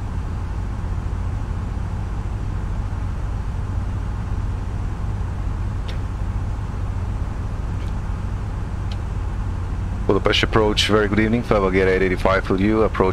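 A jet airliner's engines drone steadily.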